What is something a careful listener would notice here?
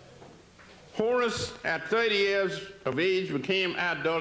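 An elderly man reads aloud slowly into a microphone, heard through loudspeakers in an echoing hall.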